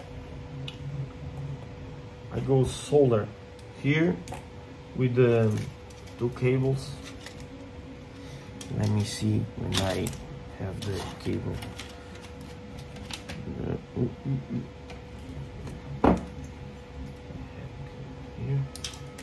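Small plastic parts click and clatter on a wooden table.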